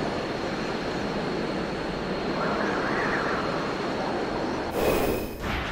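Wind rushes steadily past during a glide.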